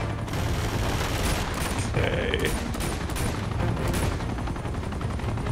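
Gunfire cracks in rapid bursts.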